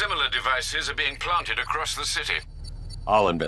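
An elderly man speaks calmly over a radio.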